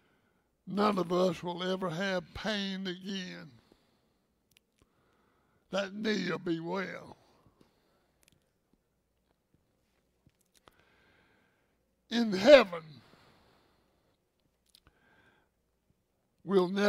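An elderly man speaks calmly into a headset microphone, pausing between phrases.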